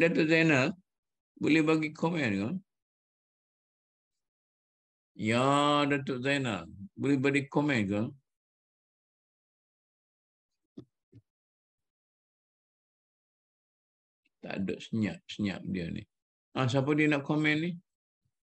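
An elderly man speaks calmly over an online call, in short phrases with pauses.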